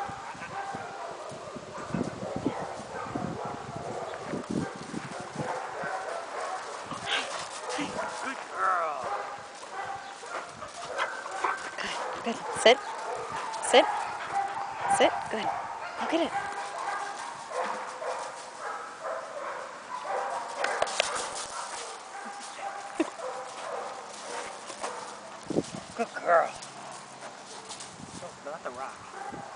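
A dog's paws scamper and crunch on gravel.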